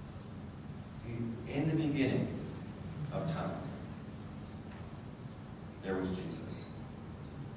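A middle-aged man speaks calmly into a microphone in an echoing hall, pausing between phrases.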